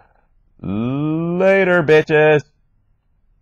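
A young man speaks up close, drawing out his words in a sing-song way.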